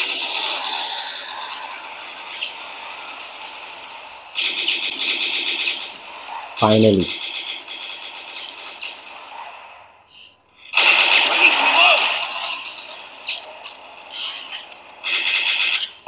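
Gunfire from a mobile game rattles in rapid bursts through a small phone speaker.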